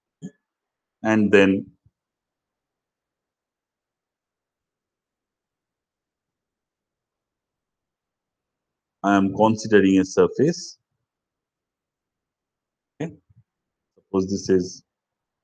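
A man lectures calmly through a microphone, in short phrases with pauses.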